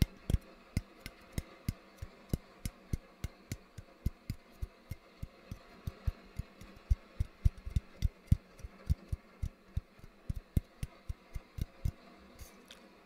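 Fingertips tap and click close to a microphone in a quick, uneven rhythm.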